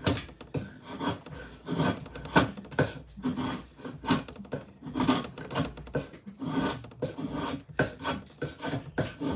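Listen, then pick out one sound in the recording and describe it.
A blade scrapes and shaves wood in quick strokes.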